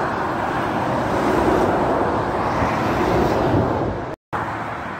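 A lorry drives past close by with a loud rumbling roar.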